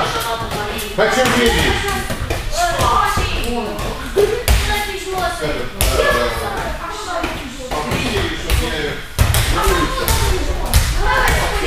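A ball thumps as children bat it with their hands.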